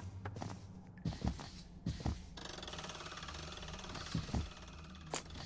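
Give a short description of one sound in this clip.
Heavy footsteps thud on a stone floor in an echoing space.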